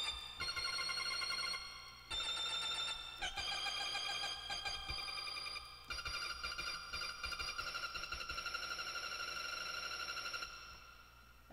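Electric keyboard chords ring out, held and changed every second or two.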